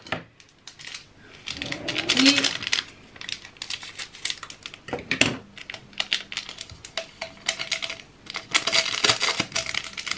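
A plastic wrapper crinkles and rustles in someone's hands.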